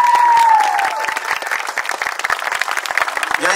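People clap their hands in applause.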